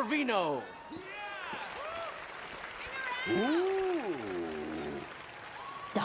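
An audience whoops and cheers.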